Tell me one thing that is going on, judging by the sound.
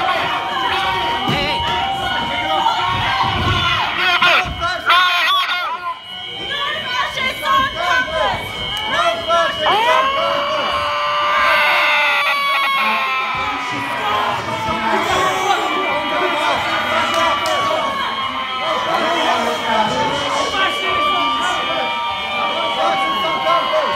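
A crowd of men and women shout and jeer loudly in an echoing hall.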